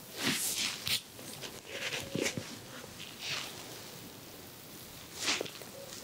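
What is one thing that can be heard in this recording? Small objects tap and click close by.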